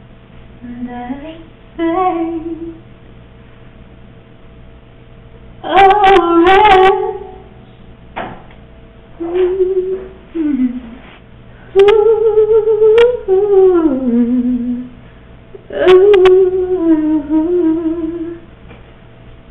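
A young woman sobs and wails nearby.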